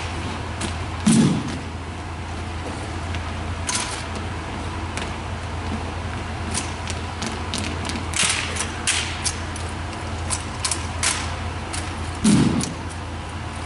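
Boots stamp on a hard floor.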